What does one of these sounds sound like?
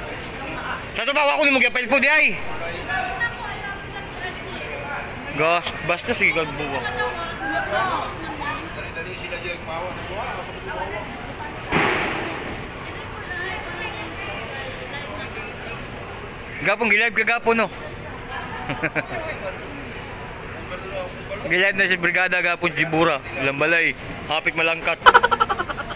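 Young men talk and shout loudly close by, outdoors.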